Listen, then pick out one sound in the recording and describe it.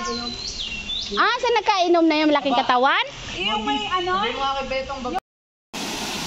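A young woman calls out loudly outdoors, her voice rising and falling.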